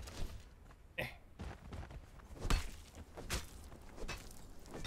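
A pickaxe chops at a carcass with dull knocks.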